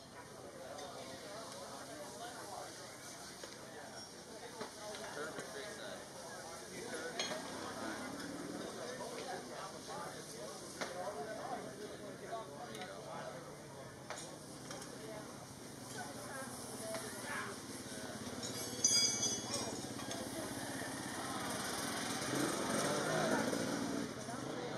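Metal tire levers clink and scrape against a wheel rim.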